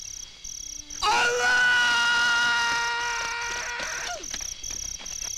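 An elderly man shouts loudly outdoors.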